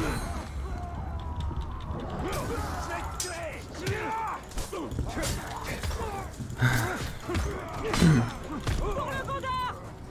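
Blades clash and thud as fighters battle.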